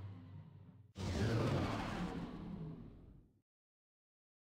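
Spaceship thrusters blast loudly and fade away.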